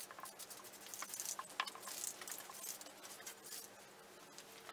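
Spray paint hisses from a can in short bursts.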